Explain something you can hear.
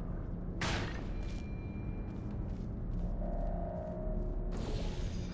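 An energy gun fires with a sharp, hissing whoosh.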